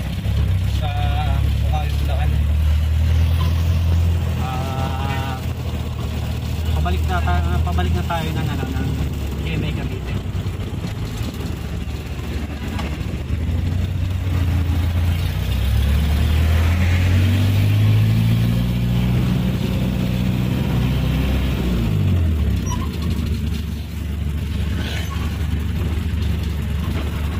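A diesel engine rumbles close by and revs up as the vehicle speeds up.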